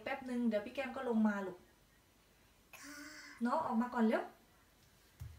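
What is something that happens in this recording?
A little girl talks in a high, lively voice close by.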